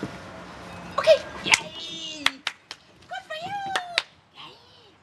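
A woman talks playfully to a dog up close.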